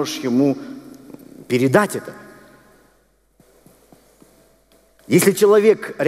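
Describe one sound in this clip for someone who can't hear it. A middle-aged man speaks expressively through a headset microphone in a reverberant hall.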